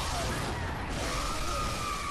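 A blade slashes into flesh with a wet splatter.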